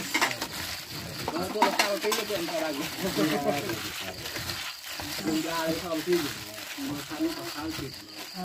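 A gloved hand squelches and mashes wet chopped food in a metal bowl.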